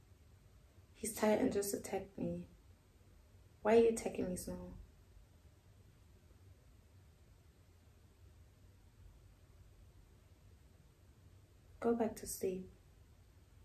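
A young woman speaks calmly, close by, in short bursts.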